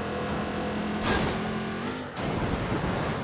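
A car crashes into a tree with a loud thud.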